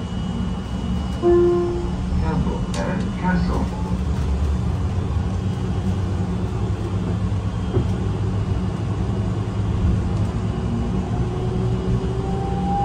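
A bus engine hums steadily while driving.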